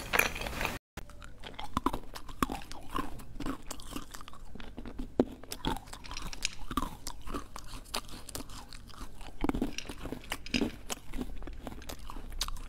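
Shells clink and rattle against each other as they are picked from a bowl.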